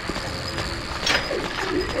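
A metal gate rattles as a key unlocks it.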